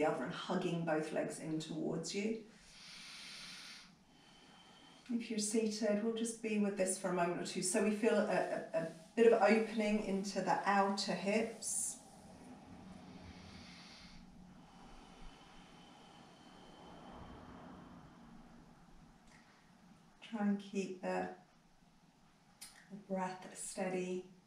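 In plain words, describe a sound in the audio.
A woman speaks calmly and softly nearby, with long pauses.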